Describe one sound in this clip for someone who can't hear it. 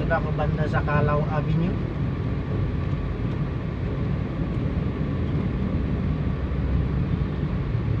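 A jeepney engine rumbles close by.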